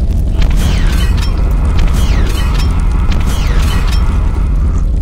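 A gun fires repeatedly in quick bursts.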